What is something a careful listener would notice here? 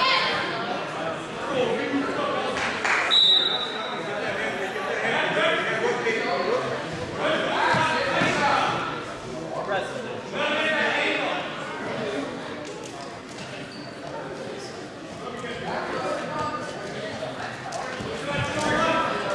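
People shout encouragement in a large echoing gym.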